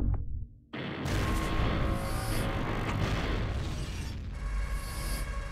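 A crystal attack bursts with a loud, ringing rumble.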